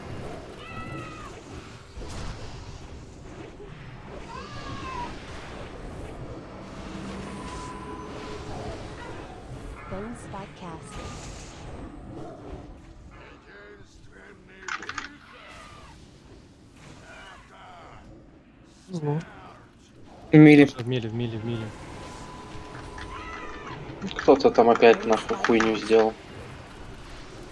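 Spell effects whoosh and crackle during a fantasy battle.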